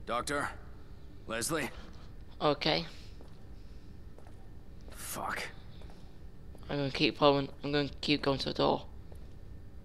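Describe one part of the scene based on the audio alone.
A man calls out and mutters in a low voice.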